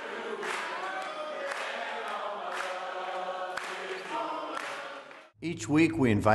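A crowd sings together.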